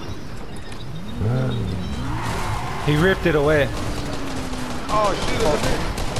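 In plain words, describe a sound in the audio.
A car engine roars as it speeds along.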